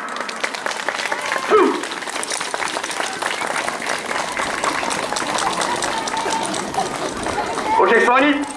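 Wooden clappers clatter rapidly.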